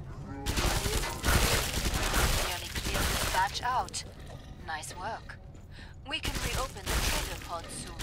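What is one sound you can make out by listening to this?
Monsters growl and shriek.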